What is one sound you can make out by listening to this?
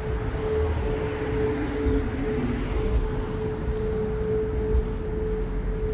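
A car drives past on the street.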